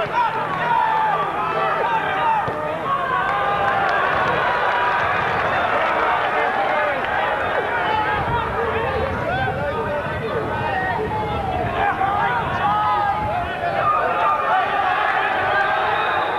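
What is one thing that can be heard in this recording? A football crowd chants and shouts outdoors.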